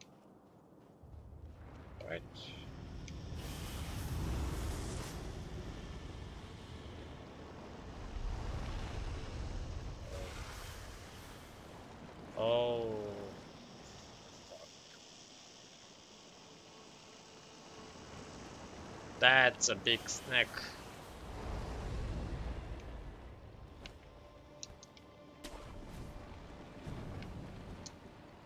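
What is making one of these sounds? Wind gusts and howls, rising and falling in waves.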